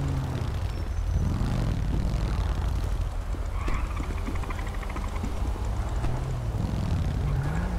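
A motorcycle engine idles and revs nearby.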